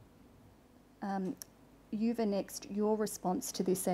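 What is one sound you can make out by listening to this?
A woman speaks calmly and formally into a microphone.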